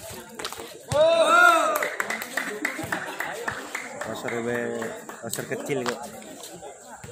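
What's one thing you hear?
A crowd of young players and onlookers shouts and cheers outdoors.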